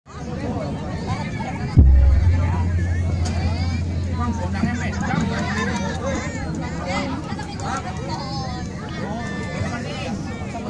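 A crowd of people chatters loudly outdoors.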